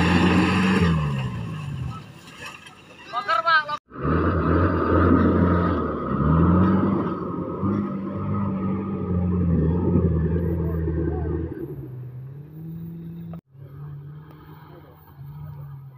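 An off-road vehicle's engine roars and revs hard.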